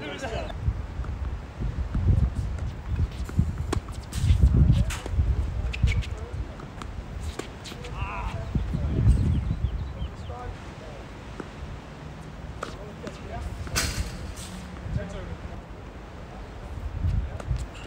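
Tennis balls are struck with rackets with sharp pops.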